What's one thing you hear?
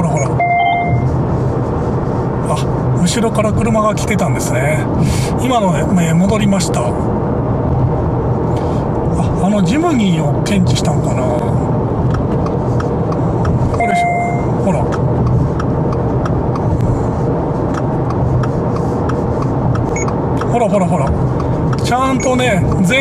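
A car engine hums steadily with road noise inside the car.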